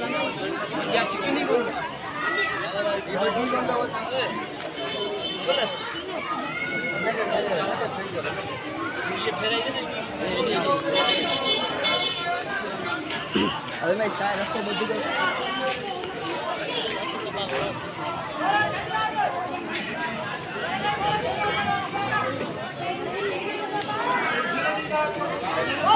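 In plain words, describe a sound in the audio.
A crowd of men talk and call out nearby outdoors.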